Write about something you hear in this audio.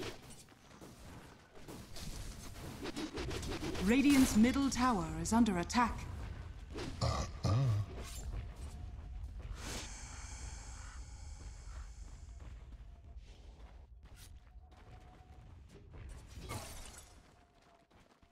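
Magic bursts crackle.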